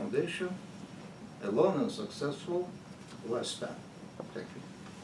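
An elderly man speaks calmly to a small room.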